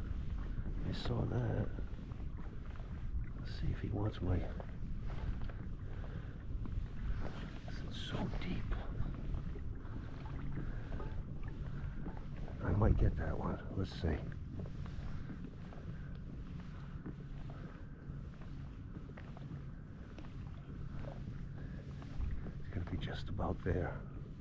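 Wind rumbles across the open water.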